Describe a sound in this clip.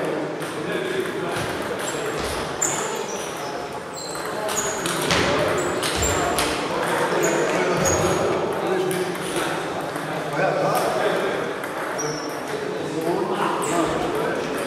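Sounds echo through a large hall.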